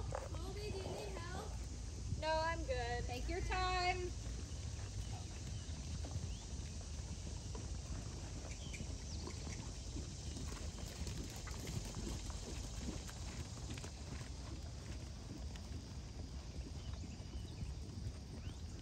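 Horse hooves thud softly on sand.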